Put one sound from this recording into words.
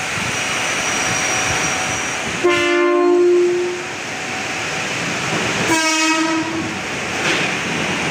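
A commuter train rumbles past close by.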